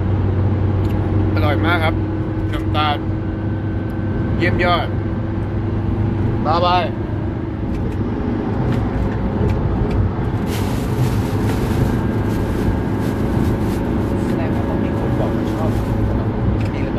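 A vehicle's engine and road noise rumble steadily inside the cabin.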